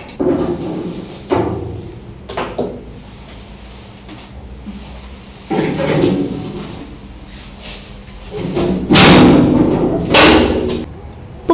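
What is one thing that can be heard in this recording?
A metal hatch clanks as it is pushed open and shut.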